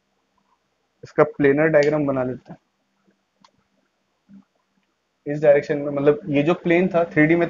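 A man speaks calmly and clearly, as if explaining, close to a microphone.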